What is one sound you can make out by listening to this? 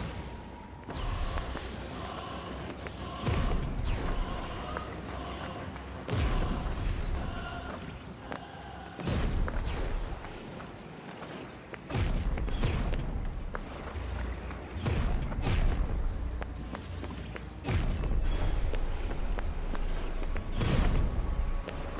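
Bursts of fire whoosh and roar in short blasts.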